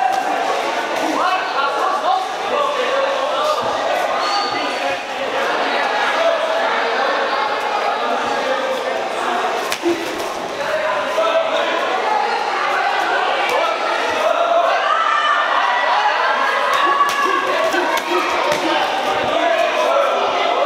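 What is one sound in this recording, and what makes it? Boxing gloves thud against a body and gloves.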